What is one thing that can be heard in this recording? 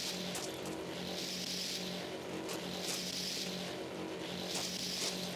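Footsteps tread steadily on a stone path.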